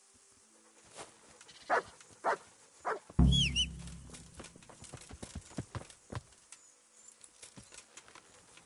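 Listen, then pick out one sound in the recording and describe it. Footsteps thud on a dirt path.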